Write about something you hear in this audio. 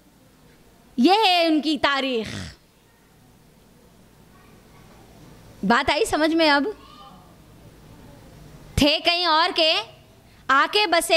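A woman speaks into a microphone in short phrases with pauses.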